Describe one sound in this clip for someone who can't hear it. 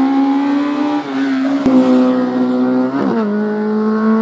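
A car engine's pitch drops sharply with each gear change.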